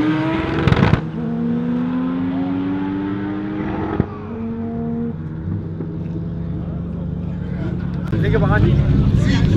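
Engines drone on in the distance and slowly fade.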